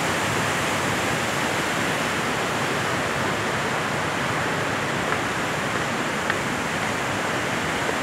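A small waterfall splashes steadily into a pool.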